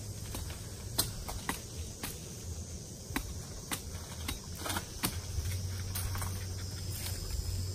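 A machete chops sharply at a coconut.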